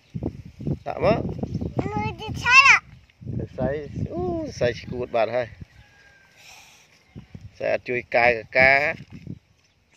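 A young child laughs.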